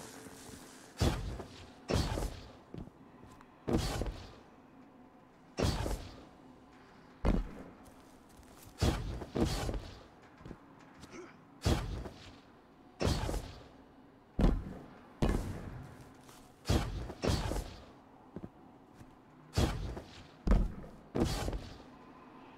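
A bow fires with sharp, repeated twangs.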